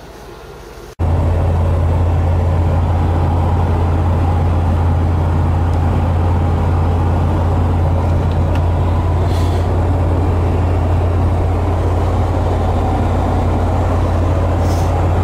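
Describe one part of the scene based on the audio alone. A pickup truck drives on a highway, heard from inside the cab.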